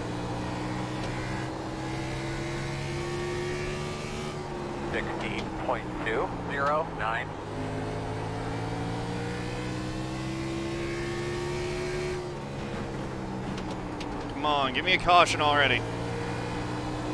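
A racing car engine drones steadily at high revs, rising and falling slightly in pitch.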